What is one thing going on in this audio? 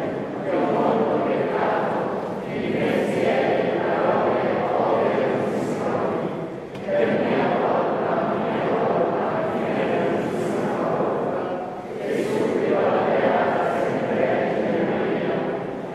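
A middle-aged man speaks steadily and calmly into a microphone in an echoing hall.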